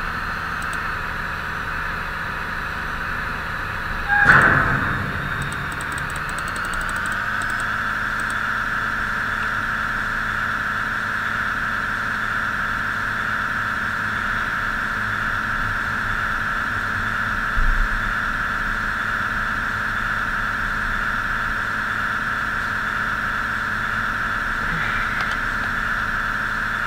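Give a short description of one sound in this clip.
A train engine hums steadily as the train rolls along the tracks.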